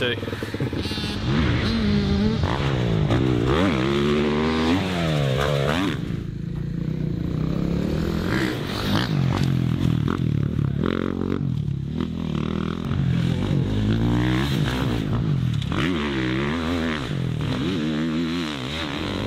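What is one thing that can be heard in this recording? A dirt bike engine revs up and down as it races past.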